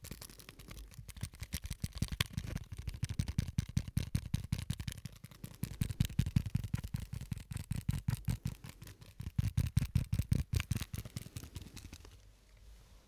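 A small object crinkles and taps rapidly between fingers close to a microphone.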